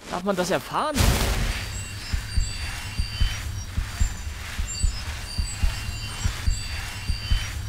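A magic spell hums and crackles steadily with a pulsing beat.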